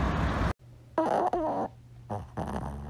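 A small dog whines.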